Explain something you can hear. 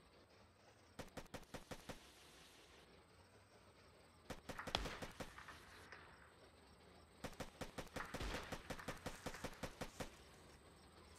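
Footsteps thud quickly and evenly on grass.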